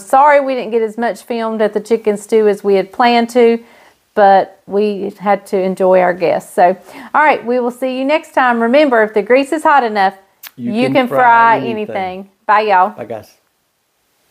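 A middle-aged woman speaks warmly and clearly into a close microphone.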